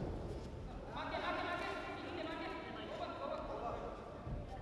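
A man shouts loudly from close by.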